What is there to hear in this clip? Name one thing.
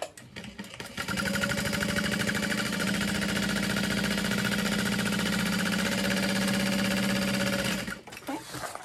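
A sewing machine hums steadily as it stitches.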